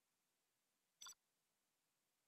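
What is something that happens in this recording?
A game menu gives a short electronic click.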